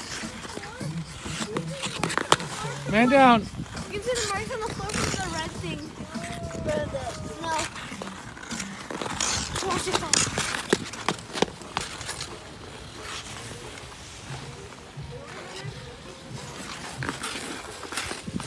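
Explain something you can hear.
Ice skate blades scrape and hiss on ice.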